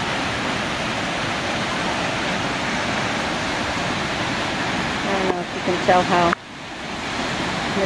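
A waterfall roars steadily, close by, outdoors.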